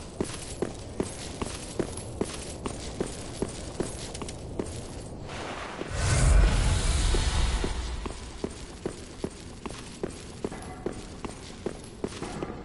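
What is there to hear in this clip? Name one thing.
Armored footsteps thud at a steady running pace.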